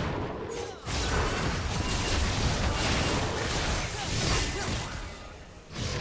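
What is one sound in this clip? Game spells whoosh and crackle during a fight.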